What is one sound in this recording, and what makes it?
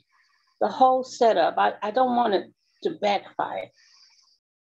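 A middle-aged woman speaks with animation, close up.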